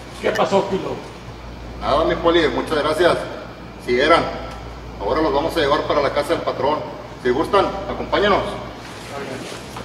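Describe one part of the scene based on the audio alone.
A man speaks loudly and tersely nearby.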